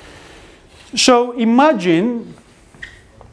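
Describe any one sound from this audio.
A man speaks briefly through a microphone in an echoing room.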